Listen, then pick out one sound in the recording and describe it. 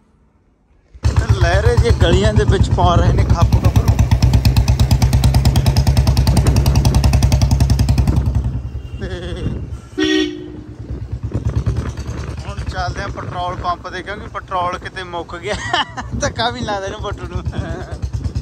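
A motorcycle engine starts and runs with a loud, steady rumble.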